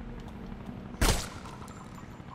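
A single gunshot rings out sharply.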